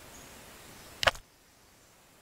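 A single sharp click sounds as a menu closes.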